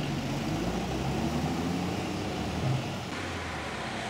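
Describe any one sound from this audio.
Car engines hum steadily as a line of vehicles drives slowly past.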